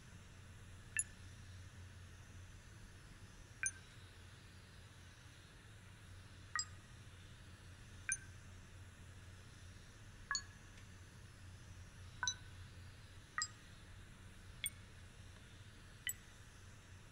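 Short electronic beeps sound now and then as keypad buttons are pressed.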